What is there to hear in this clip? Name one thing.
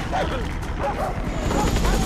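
A helicopter's rotor thuds nearby.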